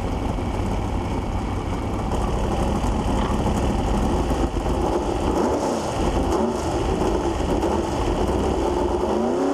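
A racing car engine idles with a loud, rough rumble.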